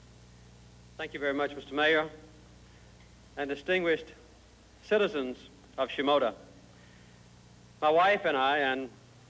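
A middle-aged man speaks calmly into a microphone, heard through a loudspeaker with pauses between phrases.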